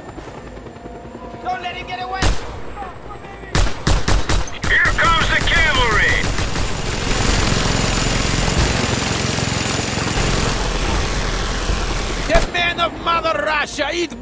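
A young man talks into a microphone with animation.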